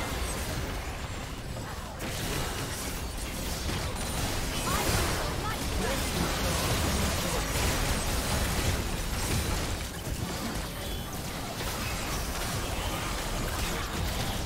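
Game spell effects whoosh, crackle and clash in a dense team fight.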